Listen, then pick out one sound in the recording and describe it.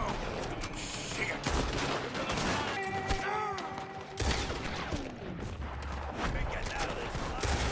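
Rifle shots ring out one after another.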